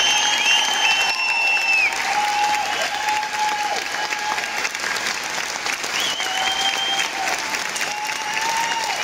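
An electric guitar plays on stage in a large hall.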